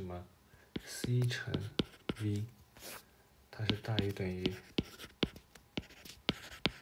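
A stylus taps and scratches on a tablet's glass.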